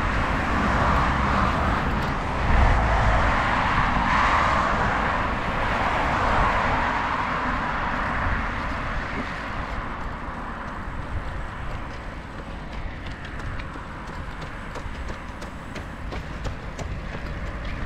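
Bicycle tyres roll steadily on smooth pavement.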